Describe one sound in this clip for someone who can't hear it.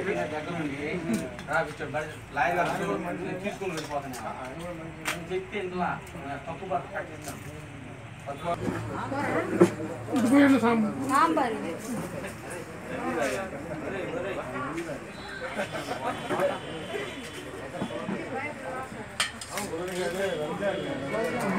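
Several men talk at once close by, in a lively crowd.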